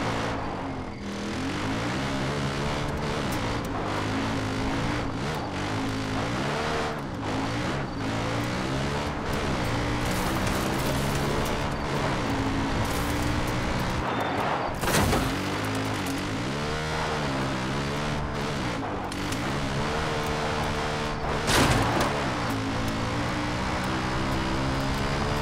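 Tyres crunch over gravel and dirt.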